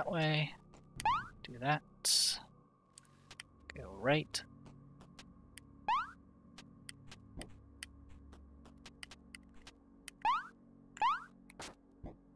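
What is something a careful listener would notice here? Short rising electronic chirps sound as a game character jumps.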